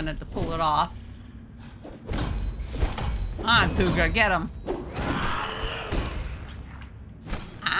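Blades swing and strike hard in a fight.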